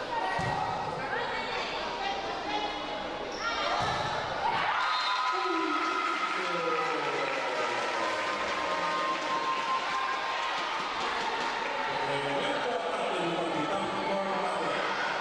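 Players' shoes squeak on a hard court in a large echoing hall.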